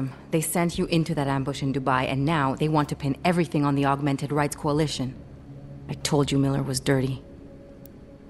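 A young woman speaks urgently and with animation, close by.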